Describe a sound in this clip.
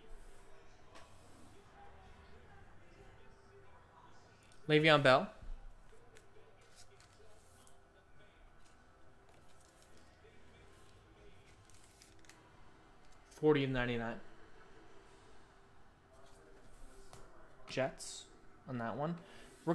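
Trading cards rustle and slide between hands.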